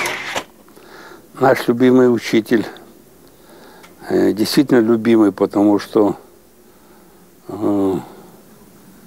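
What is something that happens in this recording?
An elderly man speaks calmly and thoughtfully, close by, in short phrases with pauses.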